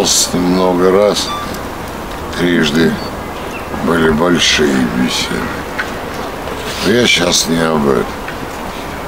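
An elderly man speaks calmly in short phrases close by, outdoors.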